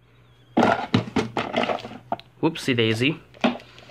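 Plastic items knock and rattle as a hand rummages through them.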